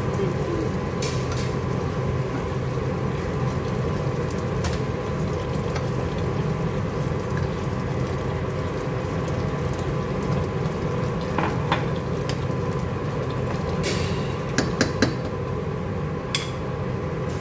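A wooden spoon stirs and knocks against a metal pot.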